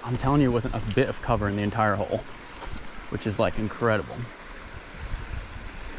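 A shallow stream trickles gently over stones.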